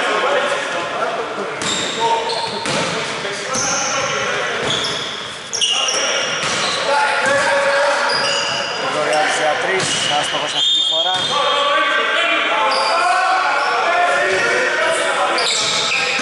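Men shout to each other in a large echoing gym.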